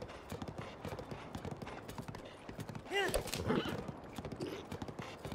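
A horse's hooves clop quickly on stone.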